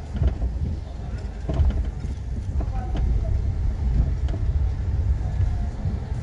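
A handcart rattles over a rough street.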